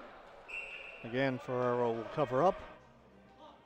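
Young men shout during a game.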